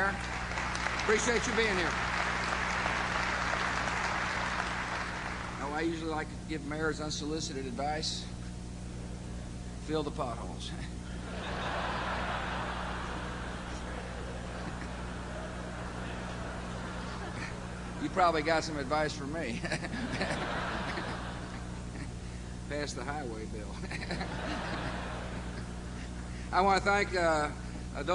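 A middle-aged man speaks into a microphone over loudspeakers, with pauses, in a large hall.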